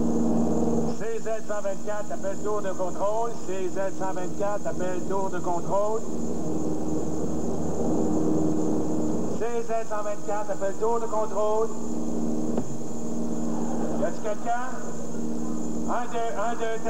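A man speaks into a radio microphone.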